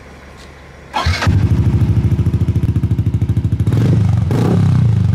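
A motorcycle engine starts with a roar and idles with a rapid, throbbing putter close by.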